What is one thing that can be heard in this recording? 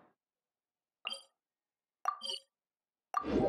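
Soft menu chimes click twice.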